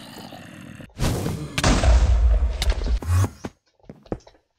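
A muffled explosion booms and crackles.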